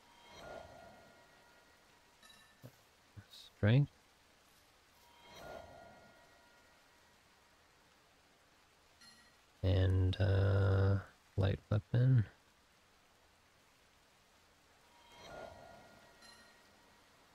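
A soft chime sounds several times.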